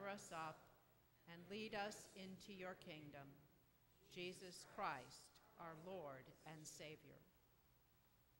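A woman reads aloud calmly in a large echoing room.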